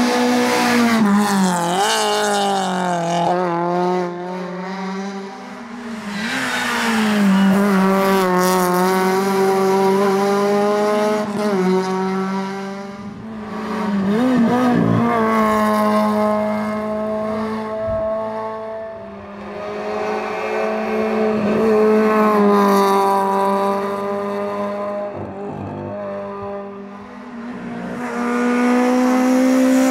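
A rally car engine revs hard and roars past, rising and falling as it changes gear.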